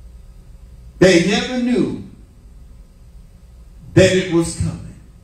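An elderly man preaches forcefully into a microphone, in short bursts with pauses.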